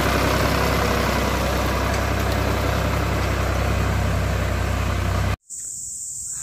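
A tractor engine runs with a steady low rumble.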